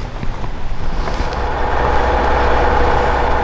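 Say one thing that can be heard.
A diesel roll-off truck's engine runs.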